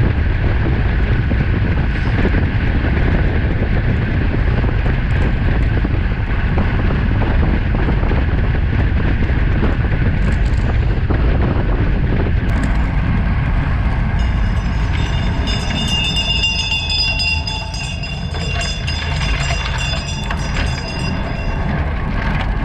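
Wind rushes and buffets loudly as a bicycle speeds along.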